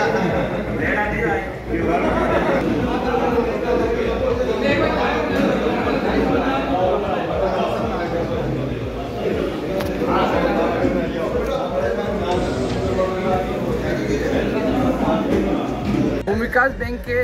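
Many men talk at once in a crowded room.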